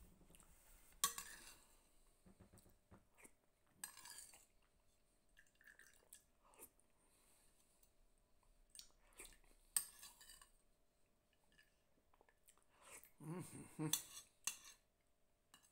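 A man slurps and eats noisily up close.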